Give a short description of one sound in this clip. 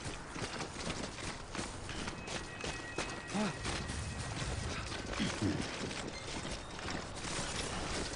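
Footsteps crunch steadily over grass and gravel.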